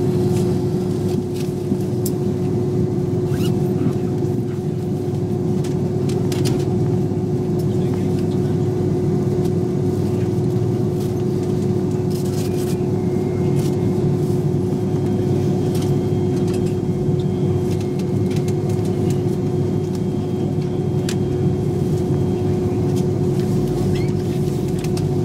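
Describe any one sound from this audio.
Jet engines hum and roar steadily from inside an aircraft cabin.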